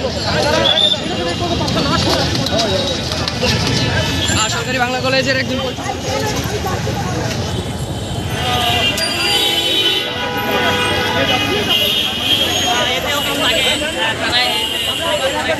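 A crowd of young men and women shout and clamour close by.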